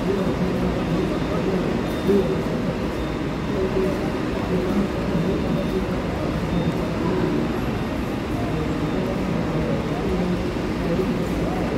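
Tyres hiss softly on wet pavement.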